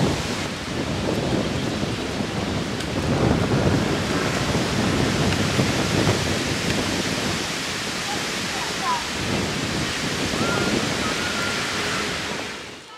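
Oars splash and dip rhythmically into the water.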